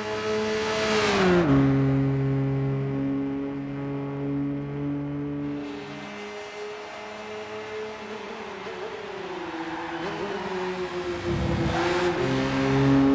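A car speeds past with a rushing whoosh.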